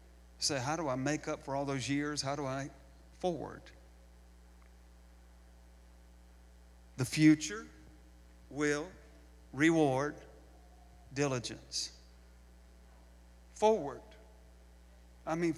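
A middle-aged man speaks with animation through a microphone, with pauses.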